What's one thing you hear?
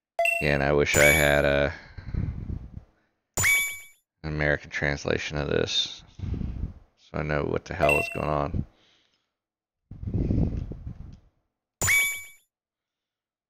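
Short electronic menu chimes ring out now and then.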